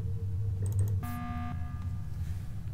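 A game alarm sounds briefly.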